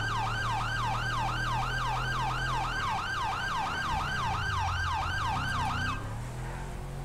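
A police siren wails rapidly.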